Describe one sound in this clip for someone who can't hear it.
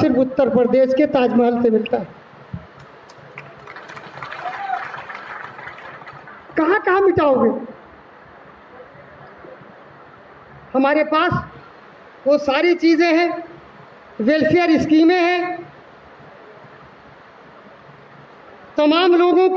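An elderly man speaks through a microphone and loudspeakers in short, forceful bursts, echoing in a large hall.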